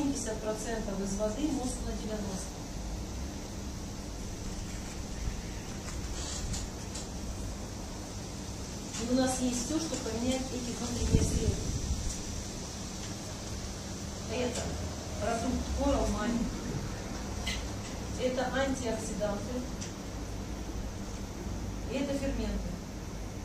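A woman speaks calmly in short bursts.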